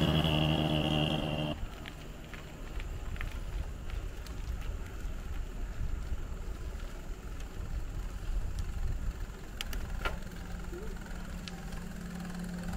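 Bicycle tyres hum on smooth tarmac.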